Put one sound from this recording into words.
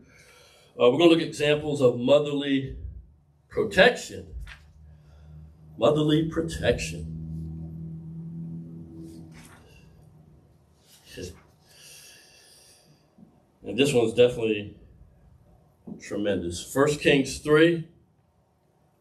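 A man speaks calmly into a microphone, heard slightly echoing in a room.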